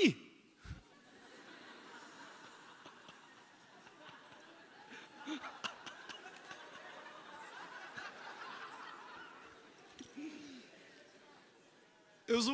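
A large audience laughs.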